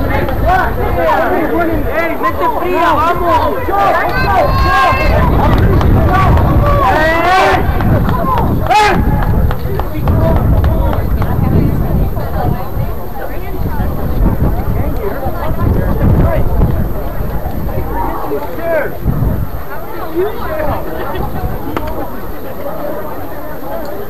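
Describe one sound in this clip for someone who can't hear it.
Young men shout and call out to each other across an open field.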